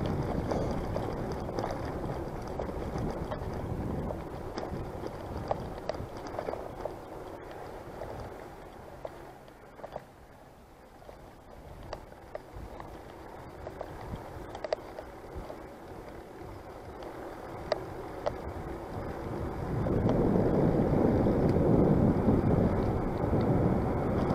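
Wind rushes past a microphone outdoors.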